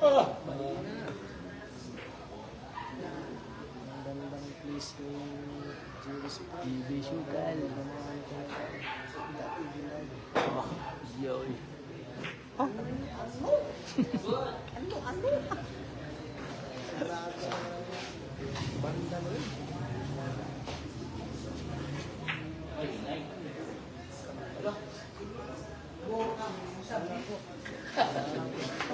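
A crowd of people chatter in a large room.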